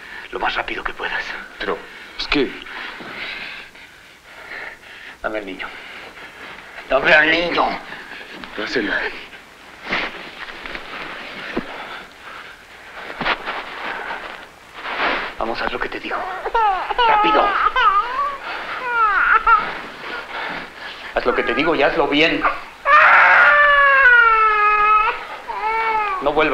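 A man speaks tensely and loudly nearby.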